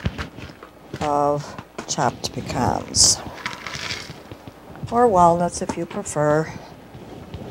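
An elderly woman speaks nearby.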